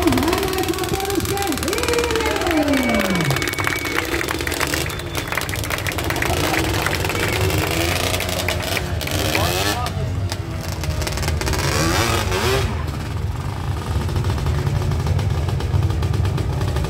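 A large outdoor crowd murmurs and cheers.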